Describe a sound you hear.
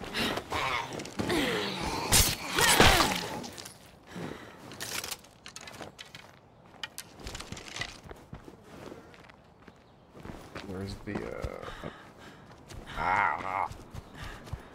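Footsteps rustle and crunch through dry grass.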